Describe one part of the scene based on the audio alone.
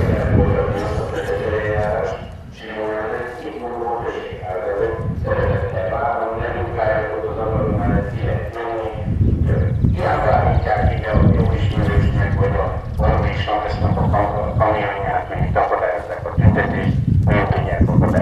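A man speaks loudly to a crowd outdoors, his voice carrying.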